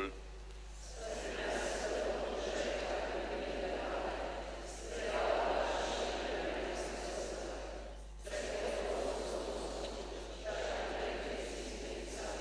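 A congregation murmurs a prayer together.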